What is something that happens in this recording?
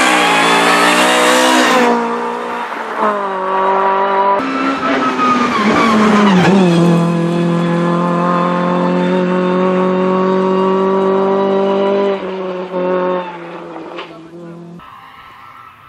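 A rally car engine screams at high revs as the car races past and pulls away into the distance.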